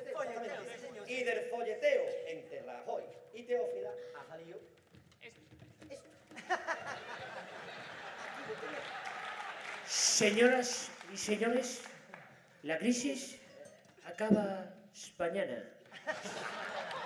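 A man speaks loudly into a microphone on a stage.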